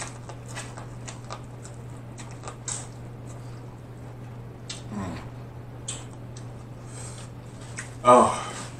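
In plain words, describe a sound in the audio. A man bites and chews food with wet, crunchy sounds close to a microphone.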